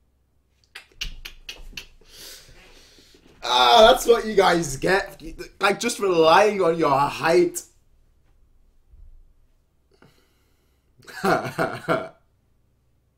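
A young man laughs into a microphone.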